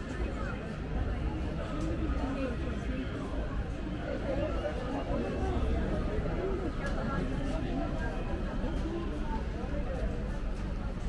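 Men and women chat quietly nearby outdoors.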